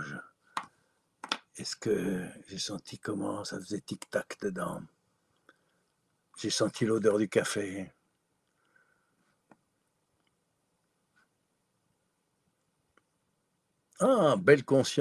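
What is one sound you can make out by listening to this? An elderly man speaks calmly through an online call, with pauses.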